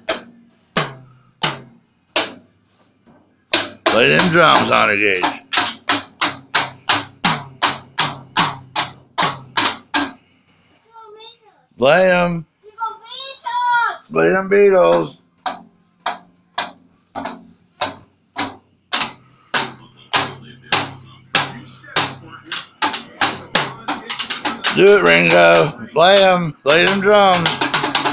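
A young child bangs quickly on a toy drum with sticks.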